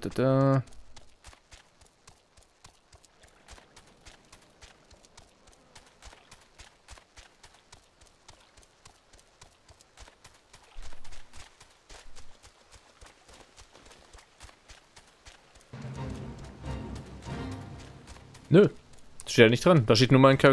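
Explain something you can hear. Footsteps tap quickly and steadily.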